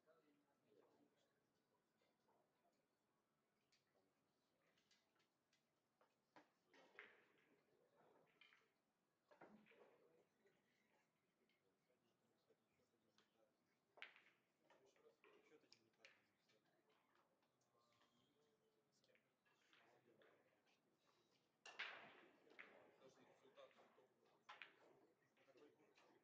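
Billiard balls click against each other on a table.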